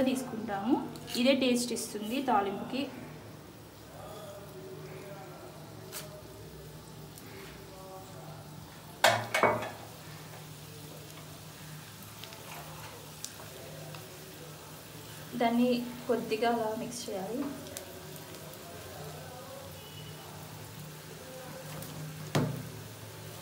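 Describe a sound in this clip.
Hot oil sizzles and crackles in a pan.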